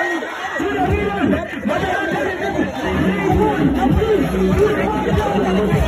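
A crowd of people sings and chants loudly nearby.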